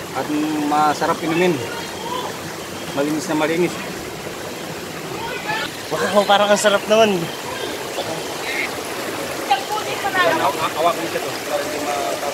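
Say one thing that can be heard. Water trickles and splashes off a leaf onto rock.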